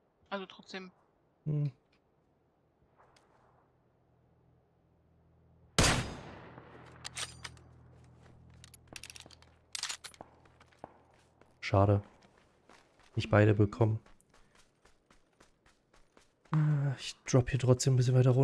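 A man speaks with animation into a close microphone.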